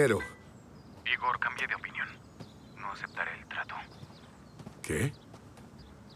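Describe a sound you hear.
A man talks on a phone, close by.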